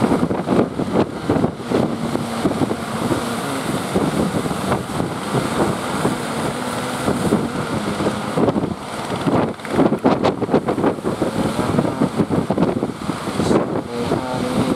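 A boat engine chugs steadily nearby.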